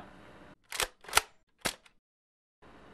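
A shotgun is racked with sharp metallic clicks.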